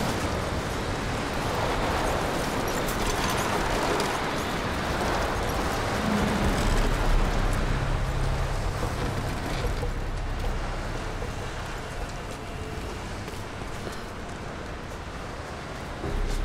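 Footsteps crunch slowly over loose rubble.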